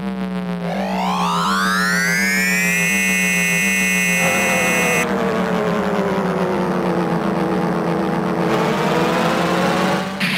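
Electronic video game music plays with a rising, whooshing tone.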